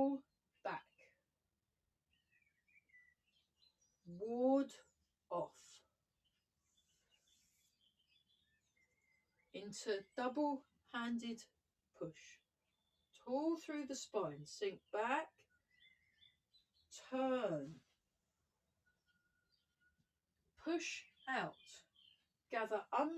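A woman speaks calmly nearby in short bursts with pauses.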